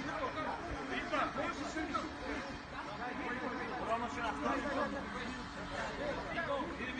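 A group of men talk and shout outdoors, heard from a distance.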